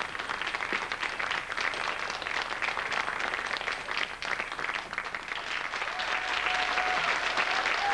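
A studio audience claps and applauds loudly.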